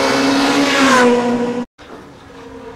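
A rally car engine roars and fades away.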